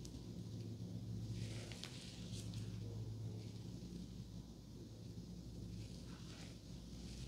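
Hair rustles and scratches softly under fingers and a comb, close up.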